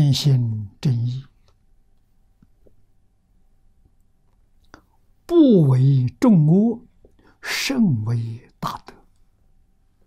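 An elderly man speaks calmly and slowly, in short phrases with pauses, close to a microphone.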